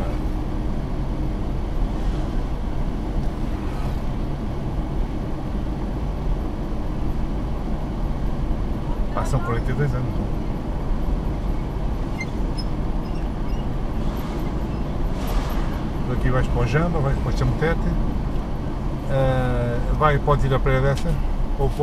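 A car drives steadily along a paved road with a low engine hum.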